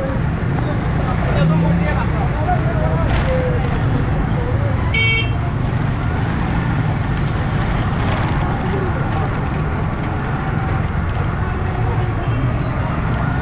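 Many people chatter in a busy street.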